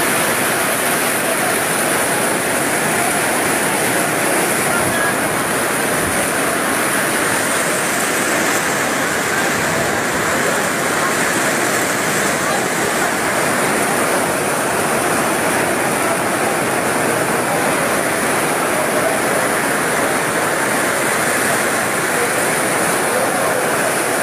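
A large crowd of men and women talk and shout loudly nearby.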